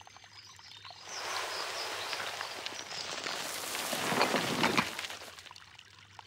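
Rock crumbles and collapses with a rushing rumble.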